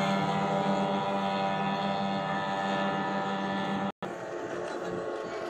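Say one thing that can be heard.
A boat motor drones steadily close by.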